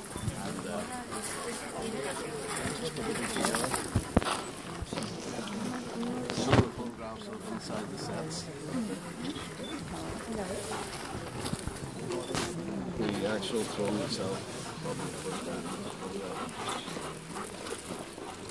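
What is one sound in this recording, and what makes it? Metal leash chains rattle and clink.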